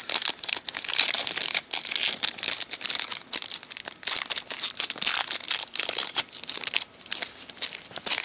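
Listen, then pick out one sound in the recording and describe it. Foil wrappers crinkle and rustle loudly, close by.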